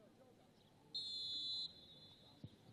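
A referee's whistle blows a short, sharp blast.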